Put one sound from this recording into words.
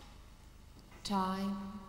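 A band on stage plays a single sustained note.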